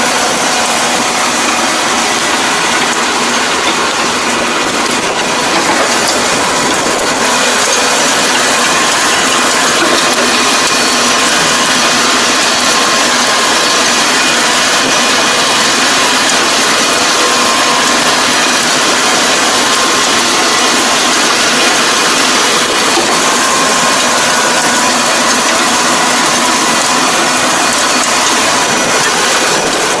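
A rotary tiller churns and splashes through wet mud.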